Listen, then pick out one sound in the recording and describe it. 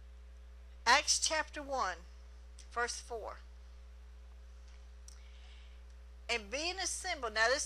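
A middle-aged woman reads out calmly through a microphone.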